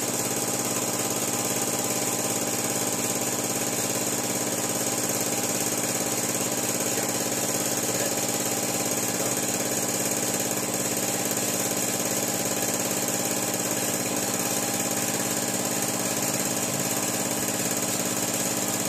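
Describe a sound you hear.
A drill motor whirs steadily as it bores into metal.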